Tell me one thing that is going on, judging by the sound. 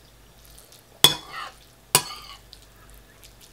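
A fork scrapes and clinks against a bowl.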